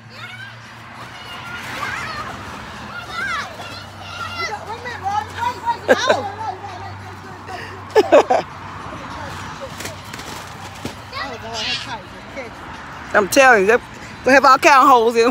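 Women talk and cheer with animation close by.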